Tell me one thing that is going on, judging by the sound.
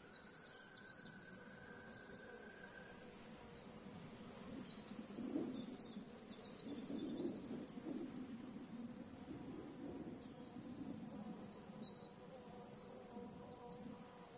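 Wind rustles through tall grass.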